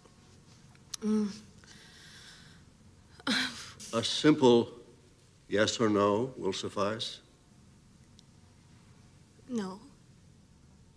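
A young woman answers calmly nearby.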